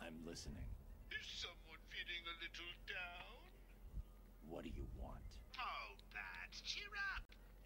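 A man laughs and speaks with animation through a phone.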